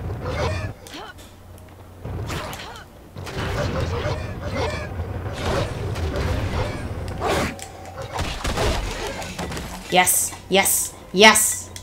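Swords clash and strike in a fast fight.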